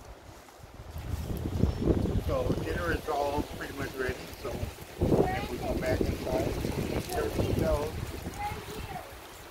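Adults talk and chat nearby outdoors.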